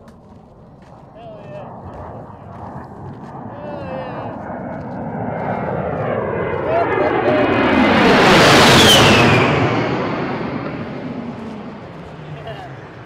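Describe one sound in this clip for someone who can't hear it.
A jet engine roars overhead, growing louder as the aircraft swoops past and then fading away.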